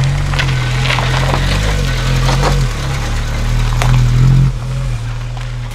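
A van engine rumbles steadily nearby.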